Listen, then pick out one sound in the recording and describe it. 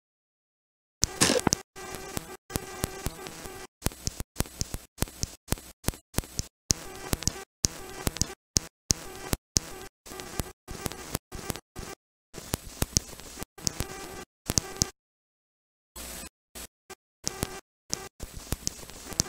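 Harsh electronic static crackles and buzzes in bursts.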